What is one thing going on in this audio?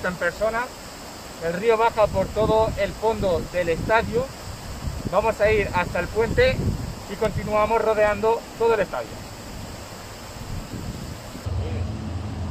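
A shallow river rushes over stones nearby.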